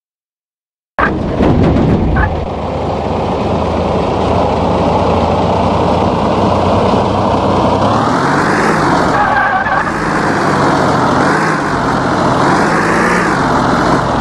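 A truck engine drones steadily, rising and falling in pitch.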